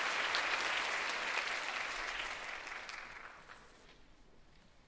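A wind band plays a loud final chord that fades away in a large echoing hall.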